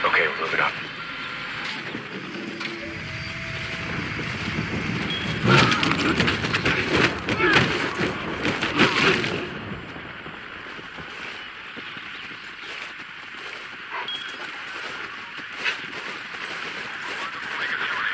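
Dry grass rustles as someone crawls through it.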